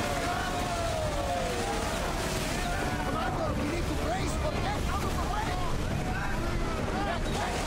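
Waves splash and rush against a wooden ship.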